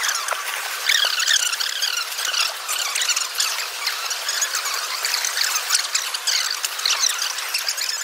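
Small plastic bricks clatter and rattle as a hand rummages through them.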